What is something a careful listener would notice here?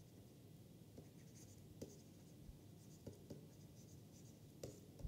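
A pen taps and scratches on a writing tablet.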